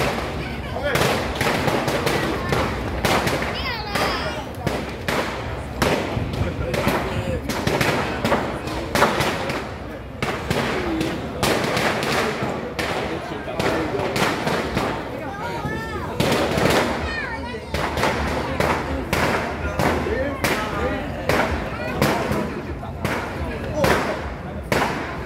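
Firecrackers pop and crackle rapidly nearby.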